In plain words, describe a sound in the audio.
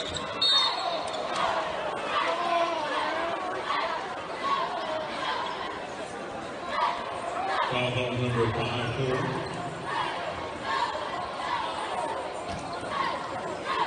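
A crowd chatters and cheers in a large echoing arena.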